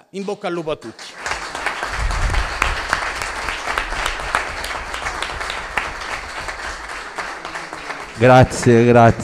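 An audience claps steadily.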